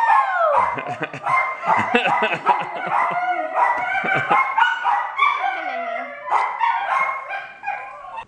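A young girl squeals and laughs excitedly close by.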